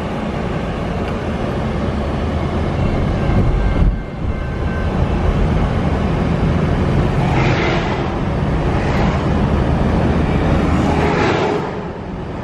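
A car engine hums as the car drives along a road.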